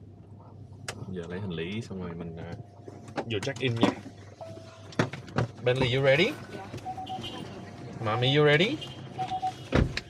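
A man talks calmly close by inside a car.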